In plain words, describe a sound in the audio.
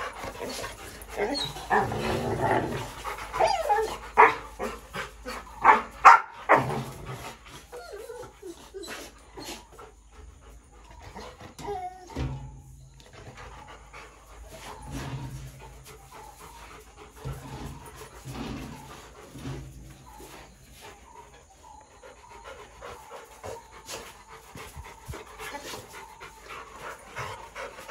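A dog pants heavily.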